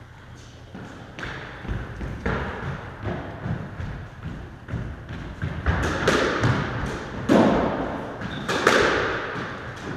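Sneakers squeak and patter on a wooden floor.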